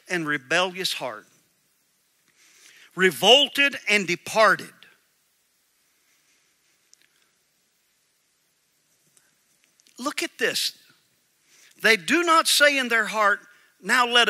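A middle-aged man speaks calmly through a microphone, reading out with pauses.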